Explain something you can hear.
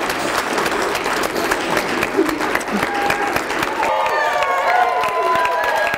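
A crowd claps loudly.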